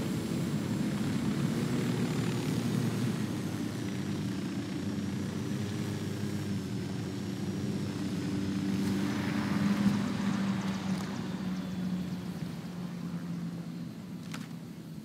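A helicopter engine drones steadily, then slowly fades.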